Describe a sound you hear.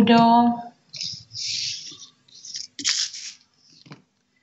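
Playing cards slide and rustle across a cloth.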